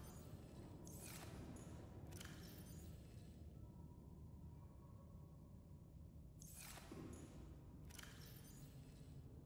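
A handheld device swooshes open and shut several times.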